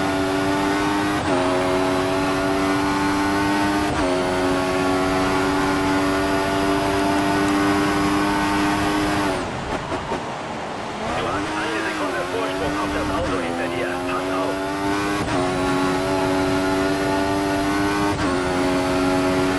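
A racing car engine screams at high revs, dropping briefly with each gear change.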